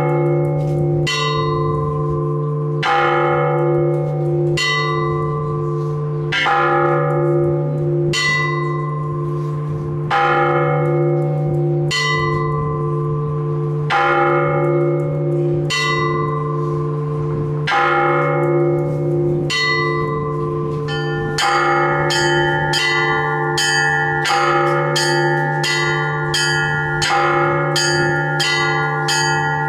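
Small church bells ring out in a steady rhythm, striking over and over with a long ringing hum.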